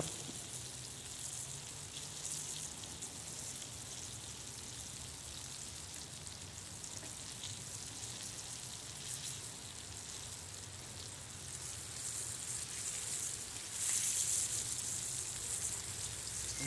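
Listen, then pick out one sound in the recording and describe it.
Fish sizzles and crackles in hot oil.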